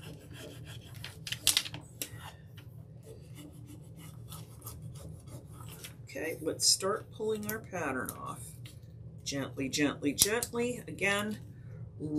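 Paper tears in small pieces.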